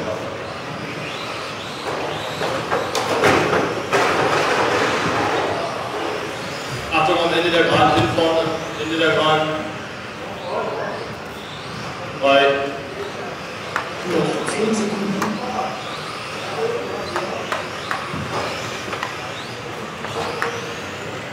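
Small electric motors of model racing cars whine and rise in pitch as they speed around in a large echoing hall.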